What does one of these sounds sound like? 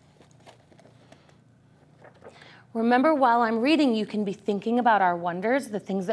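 Paper rustles as pages are handled.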